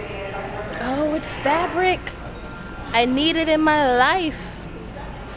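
A young woman sings out in a loud, wavering, drawn-out voice.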